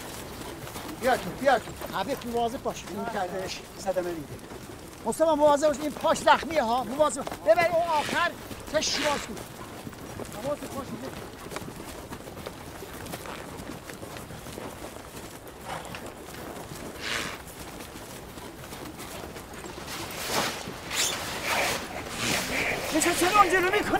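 Men shout urgently to one another outdoors.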